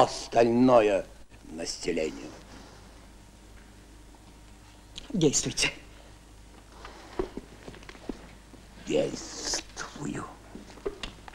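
A middle-aged man speaks with feeling, his voice a little muffled by an old recording.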